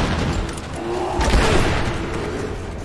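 An explosion bursts with a loud bang.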